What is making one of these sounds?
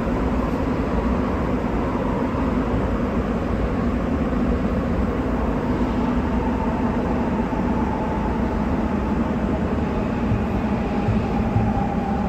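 A subway train rumbles and rattles steadily through a tunnel.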